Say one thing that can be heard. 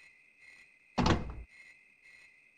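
A wooden door bangs open.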